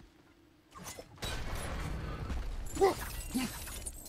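An axe whooshes and strikes with heavy, clanking impacts.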